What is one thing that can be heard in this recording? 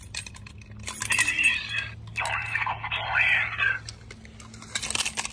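Keys jingle on a key ring.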